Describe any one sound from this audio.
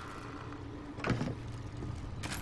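A plastic bin lid bangs open.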